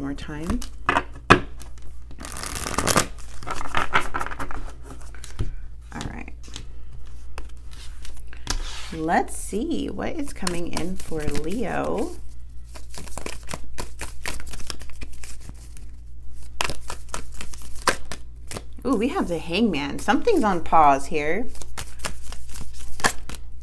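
Stiff cards shuffle and tap softly on a hard surface.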